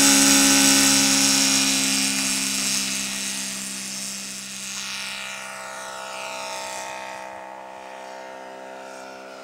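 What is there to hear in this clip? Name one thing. A model airplane engine whines loudly close by, then fades as the plane climbs away.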